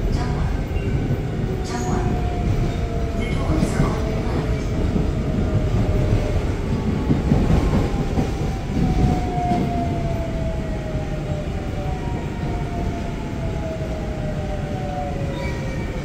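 The GTO inverter motors of a subway train whine, falling in pitch as the train slows.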